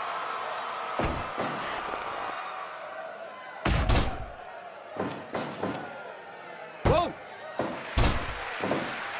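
Heavy thuds of bodies slam onto a wrestling ring mat.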